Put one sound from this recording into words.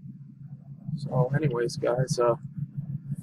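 A man speaks briefly into a microphone, close by.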